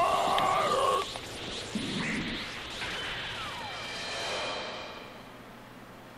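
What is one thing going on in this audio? A loud energy blast roars and fades away.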